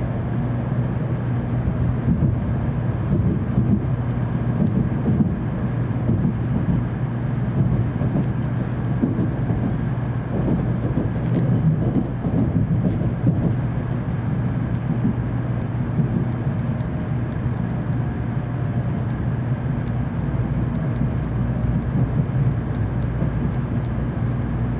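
A train rumbles and hums steadily from inside a carriage.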